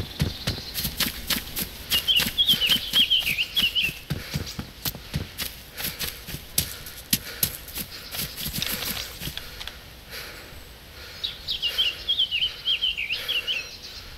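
Footsteps crunch through dry grass at a steady walking pace.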